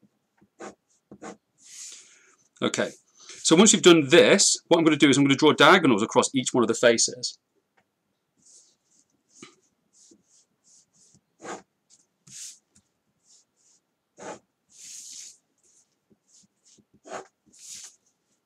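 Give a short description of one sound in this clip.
A pen scratches and taps on paper.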